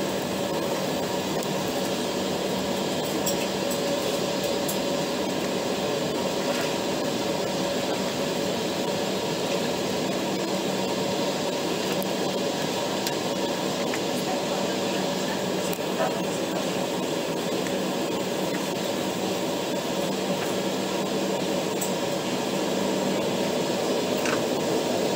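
A jet engine roars steadily inside an airliner cabin as the plane taxis.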